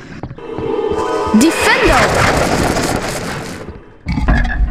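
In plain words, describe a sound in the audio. A second magic spell whooshes and sparkles.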